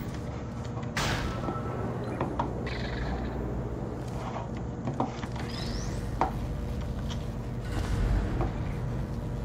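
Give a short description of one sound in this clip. Short electronic clicks and thuds sound now and then.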